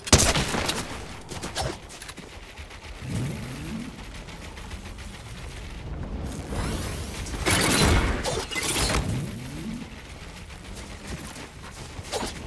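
Building pieces clatter and thud into place.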